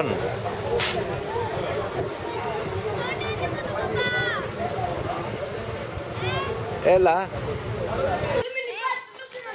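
Small waves wash onto a pebble beach.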